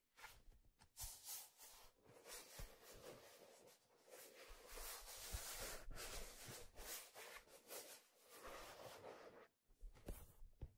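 Hands rub and scratch softly against a rubbery object close by.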